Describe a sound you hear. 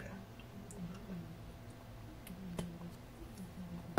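A young man gulps a drink from a plastic bottle.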